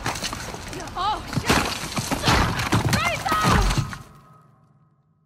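Rocks crash and rumble loudly.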